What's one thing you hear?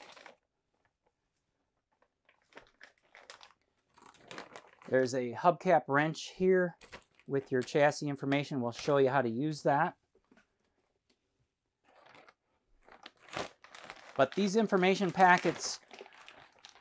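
A plastic bag rustles in a man's hands.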